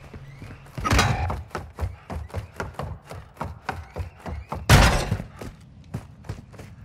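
Footsteps thud quickly and steadily on a hard floor.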